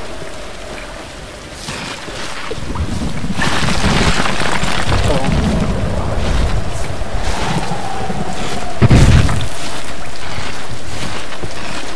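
Hands scrape and grip on wet rock.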